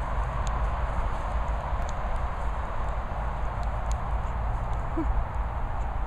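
Wind blows steadily across open ground outdoors.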